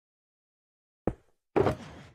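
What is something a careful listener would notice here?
A block is set down with a short knock.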